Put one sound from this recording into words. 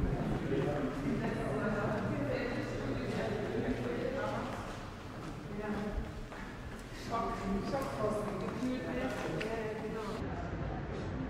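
People talk quietly in a large echoing room.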